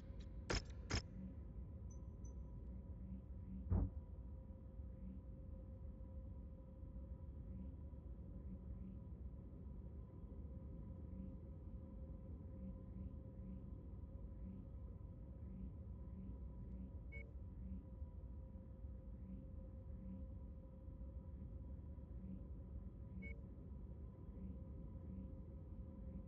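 A low electronic drone hums steadily.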